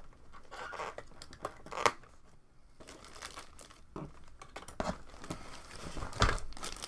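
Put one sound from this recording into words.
Plastic parts clatter and knock close by.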